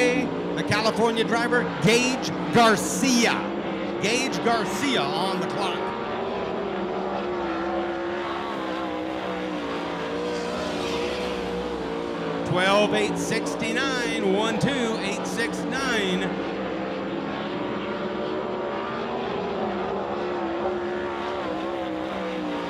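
A race car engine roars loudly as the car speeds around a dirt track.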